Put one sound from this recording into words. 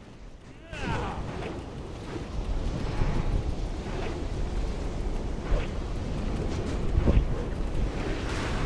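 A deep fiery rumble roars steadily.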